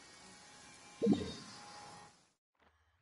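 A short game menu chime sounds.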